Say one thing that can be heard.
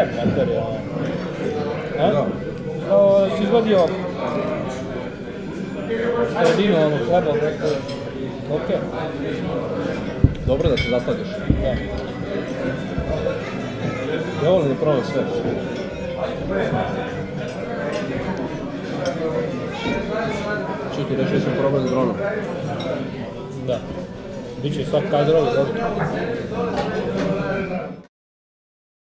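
A second man talks with animation close by.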